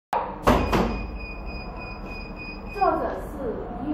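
A quiz buzzer sounds a steady electronic tone.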